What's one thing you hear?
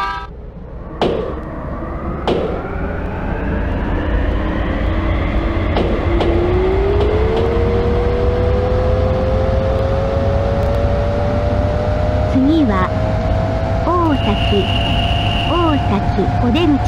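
Train wheels rumble on the rails.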